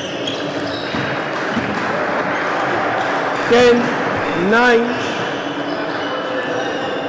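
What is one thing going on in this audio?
A crowd cheers and applauds loudly in a large hall.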